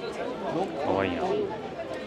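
A wooden hanger clicks softly against a clothes rail.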